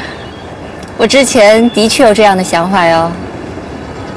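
A woman speaks calmly and with a smile, close by.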